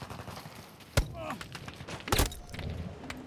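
Gunshots crack sharply nearby.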